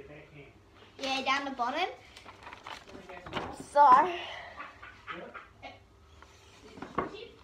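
A young girl talks animatedly close to the microphone.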